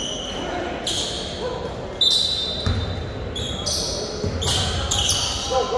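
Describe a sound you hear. A small crowd murmurs in a large echoing gym.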